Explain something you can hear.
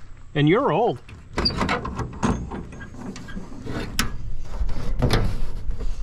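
A hand pats a metal truck hood.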